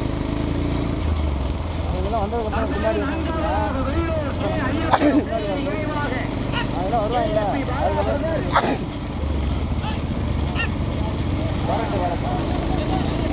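Hooves clatter on a paved road.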